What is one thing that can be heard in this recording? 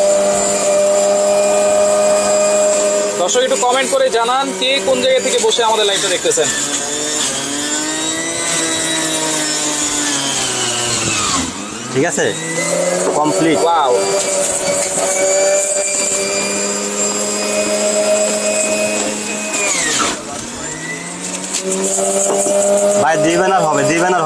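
Fruit is crushed and shredded inside a juicer.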